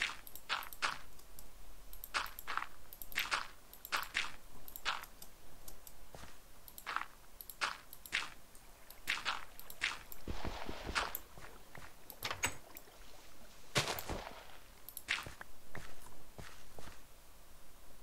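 Blocks of dirt break with repeated soft crunching thuds.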